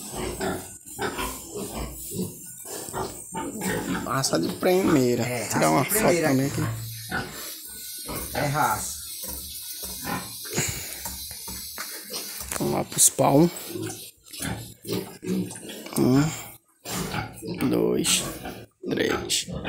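A pig grunts up close.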